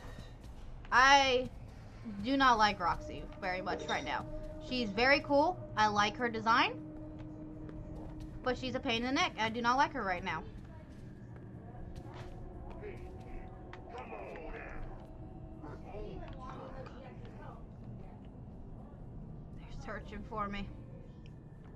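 A young girl talks excitedly and close to a microphone.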